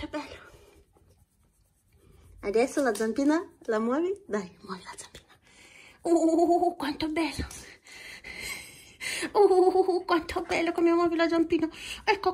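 A hand rubs and scratches a dog's fur.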